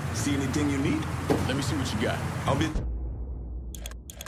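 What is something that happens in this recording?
Van doors creak open.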